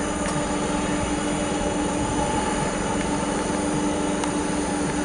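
Jet engines of a large airliner roar and whine steadily nearby.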